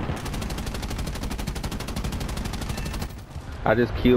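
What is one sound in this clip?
A plane's machine guns fire in rapid bursts.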